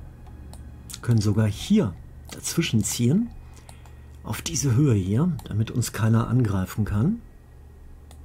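An older man talks with animation close to a microphone.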